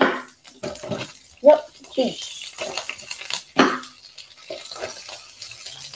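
Vegetables tumble into a pan.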